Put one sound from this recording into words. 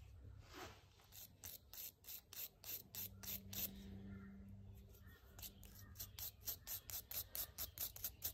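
A small metal part clicks and ticks as it is turned by hand.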